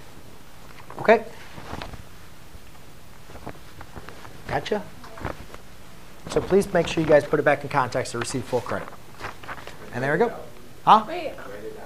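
A man speaks calmly in a slightly echoing room, in short bursts with pauses.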